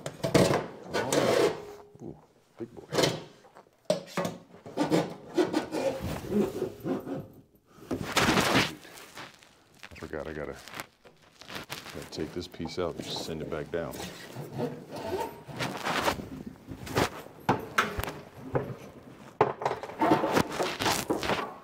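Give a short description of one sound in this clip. A metal hose clanks against a sink.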